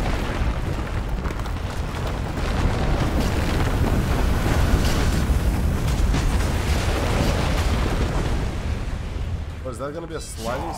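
Heavy debris rumbles and crashes down in a deep roar.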